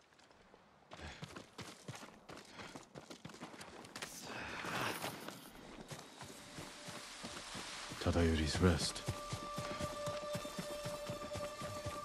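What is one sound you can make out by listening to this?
Footsteps crunch through grass and over the ground.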